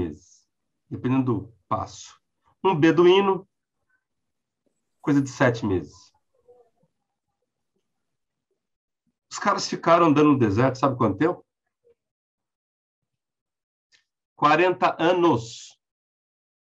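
A middle-aged man speaks with animation over an online call, in short bursts.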